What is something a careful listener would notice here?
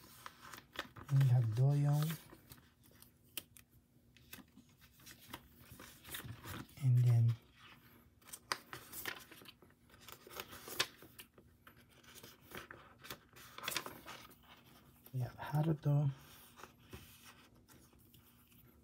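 Plastic card sleeves rustle and crinkle as cards are slid in and out.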